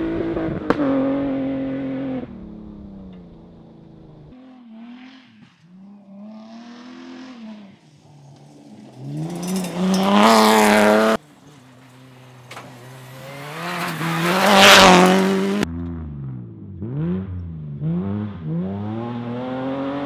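A rally car engine roars at high revs, rising and falling as the car speeds past.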